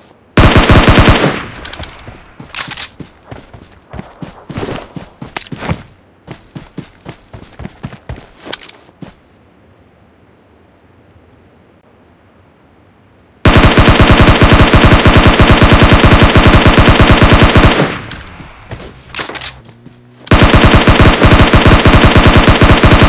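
Rapid automatic gunfire rattles in long, loud bursts.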